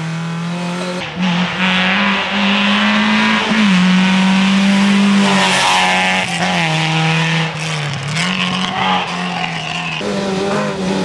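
A rally car engine roars past close by.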